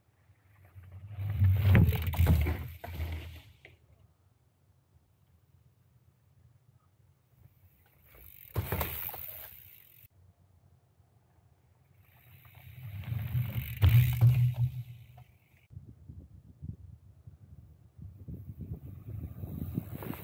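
A mountain bike rolls fast over a dirt trail and rushes past close by.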